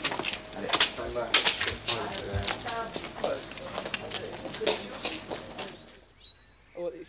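Footsteps scuff on pavement outdoors.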